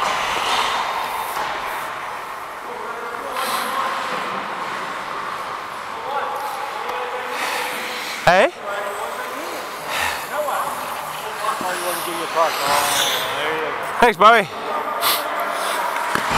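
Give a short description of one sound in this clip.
Ice skates scrape and carve across the ice in a large echoing hall.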